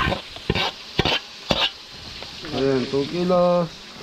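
A metal ladle scrapes and clinks against a dish.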